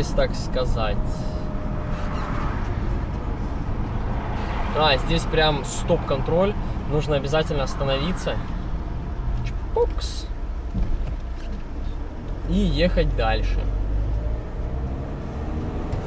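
A car engine hums with a steady low rumble of tyres on the road.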